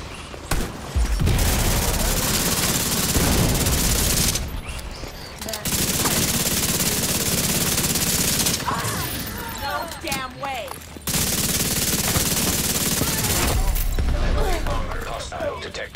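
Rapid gunfire blasts loudly in long bursts.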